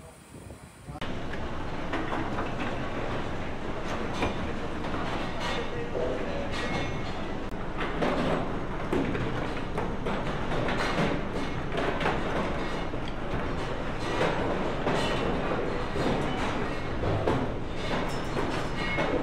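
Lumps of coal knock and clatter against each other on a conveyor belt.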